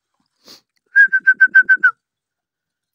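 A puppy yelps in a quick series of high, sharp cries.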